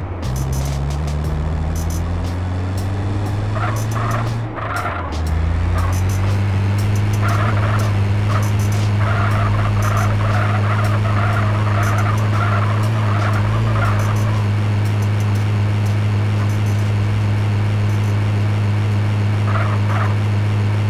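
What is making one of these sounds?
A van engine roars steadily at high speed.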